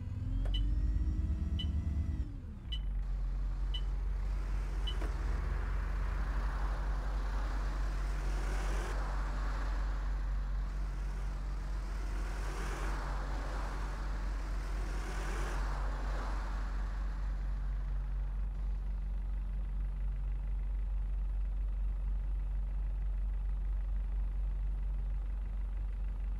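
A diesel bus engine idles.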